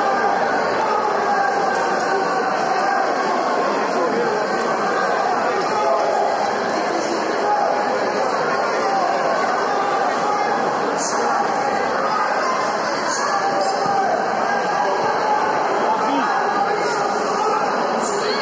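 A crowd of spectators murmurs and shouts in a large echoing hall.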